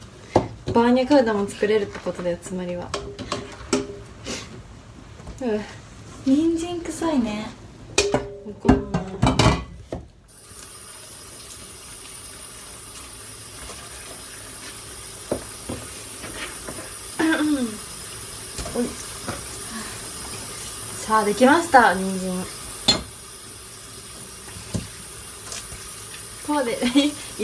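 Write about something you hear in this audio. A young woman talks brightly and animatedly close to a microphone.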